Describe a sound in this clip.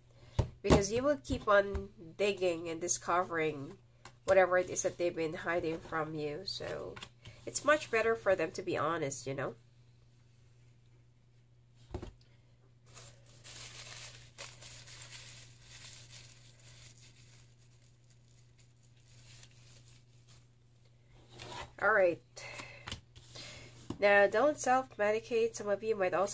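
Playing cards slide and tap softly on a wooden table.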